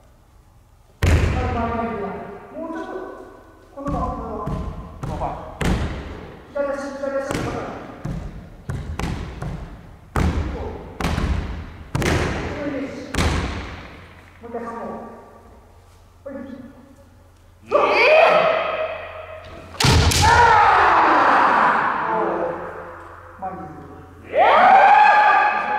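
Two fencers shout loudly, echoing in a large hall.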